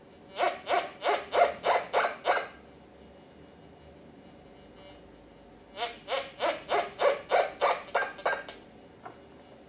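A metal detector beeps in quick repeated bursts.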